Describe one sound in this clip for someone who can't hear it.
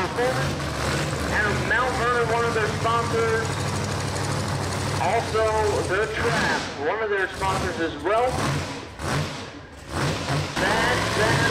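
A race car engine revs loudly in rising and falling bursts.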